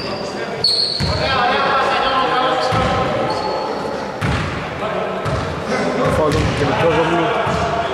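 Adult men call out to each other across the court.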